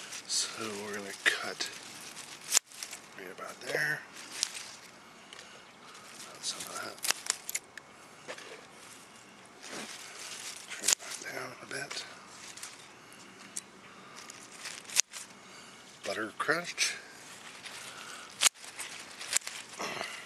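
Scissors snip through lettuce stems.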